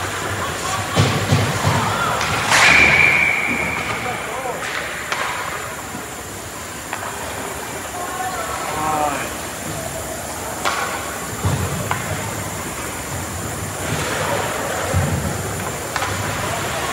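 Hockey sticks and a puck clack against the ice and boards.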